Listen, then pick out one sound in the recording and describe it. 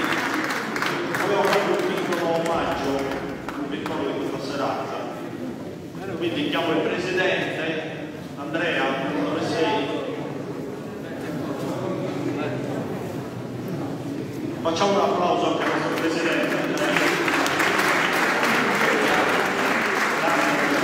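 A men's choir sings loudly in a large echoing hall.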